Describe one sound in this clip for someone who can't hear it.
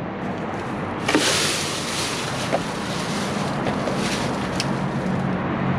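Thin plastic bags crinkle and rustle as a hand digs through them.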